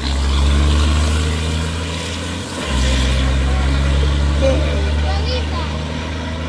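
A loud truck engine idles with a deep, steady rumble nearby.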